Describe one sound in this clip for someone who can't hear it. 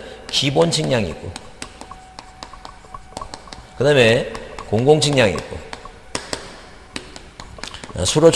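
A man speaks into a microphone in short, drawn-out phrases.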